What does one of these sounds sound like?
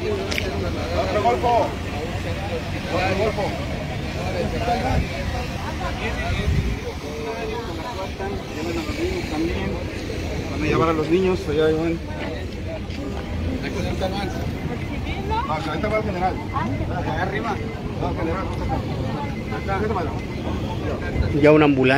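Several men and women talk at once close by, outdoors in a busy crowd.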